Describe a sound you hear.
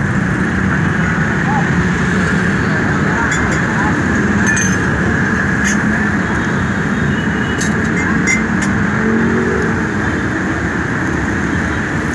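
A motorbike engine buzzes past.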